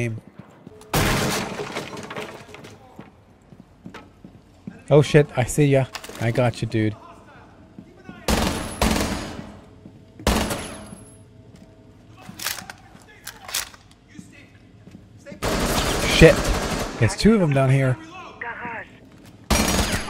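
A gun fires in loud, sharp bursts.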